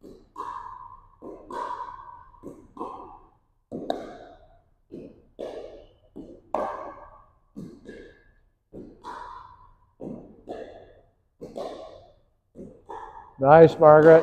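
Paddles pop a plastic ball back and forth in a large echoing hall.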